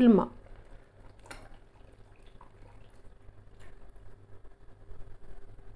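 Milk pours into a pot of soup.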